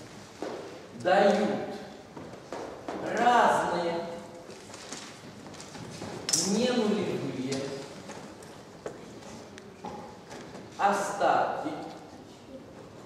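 A woman speaks calmly, as if explaining.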